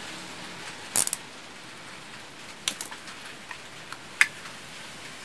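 Small plastic pieces click against a hard surface.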